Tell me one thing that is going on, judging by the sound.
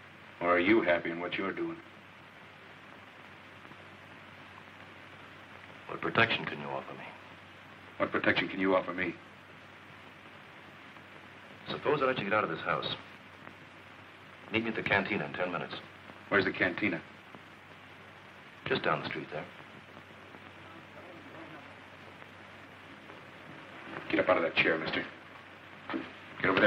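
A second man answers calmly, close by.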